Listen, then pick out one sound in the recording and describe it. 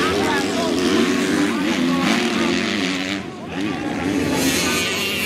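Dirt bike engines rev and whine loudly, rising and falling in pitch.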